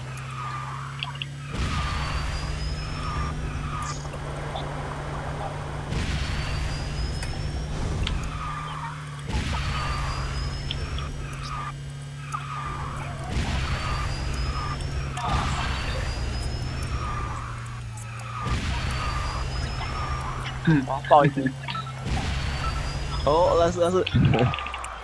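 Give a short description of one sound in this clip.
A racing game's engine drones steadily with whooshing bursts.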